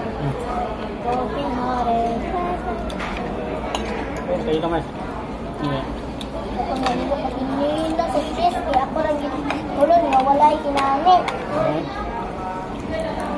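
Metal cutlery clinks and scrapes against a plate.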